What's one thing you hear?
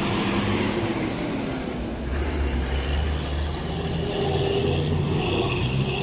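Cars drive past close by.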